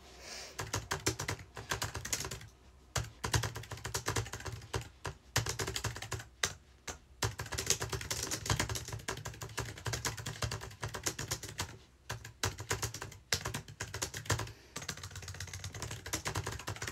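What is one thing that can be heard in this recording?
Keys clatter rapidly on a computer keyboard.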